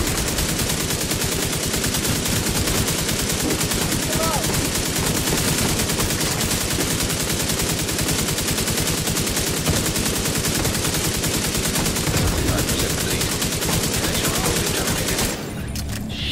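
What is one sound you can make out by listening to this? Rapid gunfire rattles steadily.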